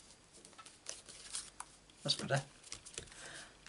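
Hands rub and smooth paper with a soft rustle.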